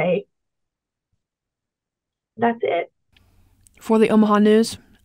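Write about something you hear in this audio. A young woman speaks calmly over an online call, in short bursts with pauses.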